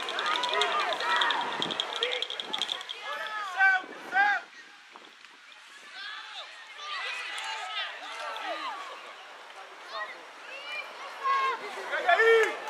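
Children shout across an outdoor field.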